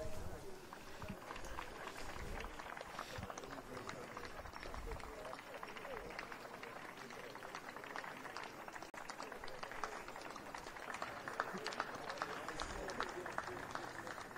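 Young men and women chatter nearby.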